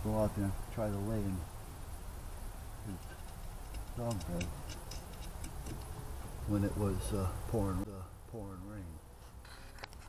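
An elderly man talks close by in a low, calm voice.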